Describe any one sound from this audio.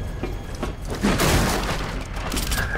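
Wooden boards smash and splinter.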